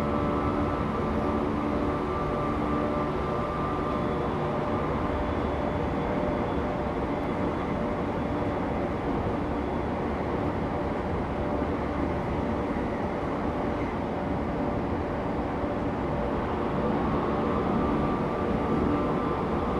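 A stopped electric train hums steadily.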